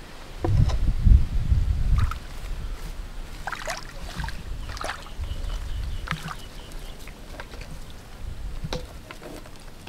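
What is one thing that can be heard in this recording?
Hands knock and rub on a plastic pipe.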